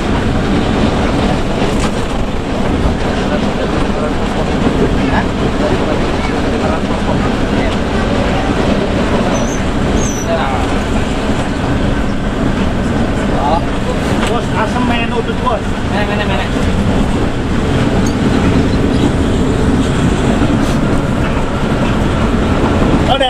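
A bus engine drones steadily from inside the cabin.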